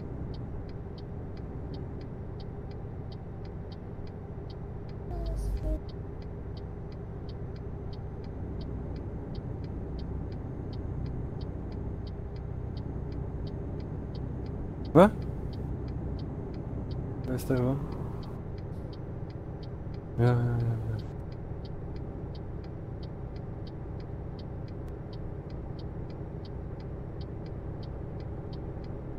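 A truck engine hums steadily as the truck drives along a highway.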